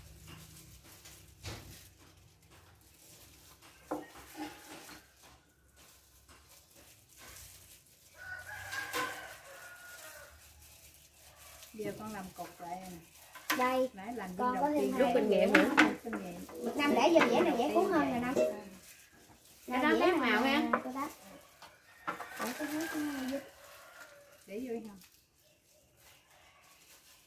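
Dishes and utensils clink on a table.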